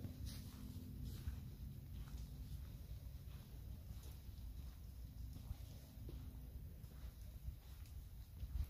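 Footsteps crunch softly on a dirt path.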